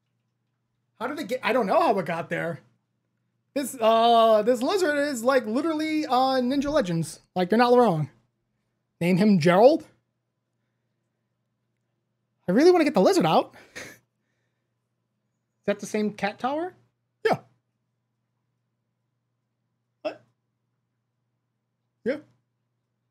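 A man talks animatedly into a close microphone, in bursts with pauses.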